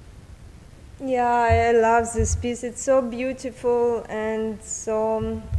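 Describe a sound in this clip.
A woman sings clearly into a close microphone.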